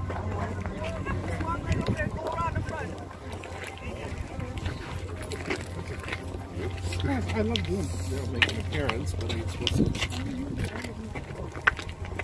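Footsteps shuffle on pavement as a crowd walks.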